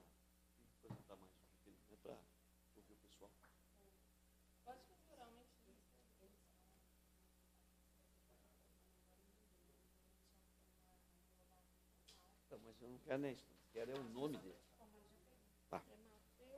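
Men and women talk quietly in a room, in scattered bursts.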